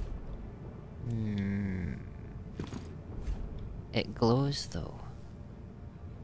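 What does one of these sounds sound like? A heavy axe is drawn with a metallic swish.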